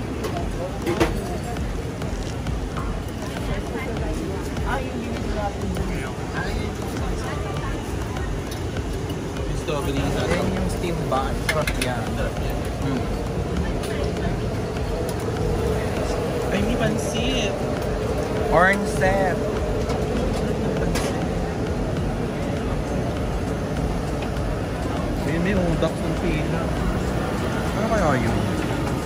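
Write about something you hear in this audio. A large crowd of people chatters and murmurs all around outdoors.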